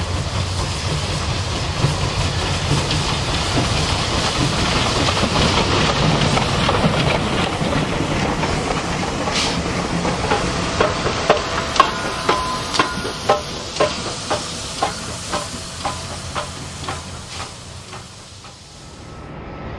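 A steam locomotive rumbles past close by.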